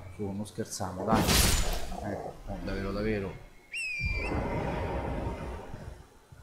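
A sword swings and strikes with heavy blows.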